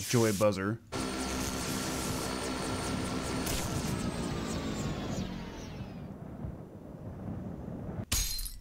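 An airship rumbles as it flies past.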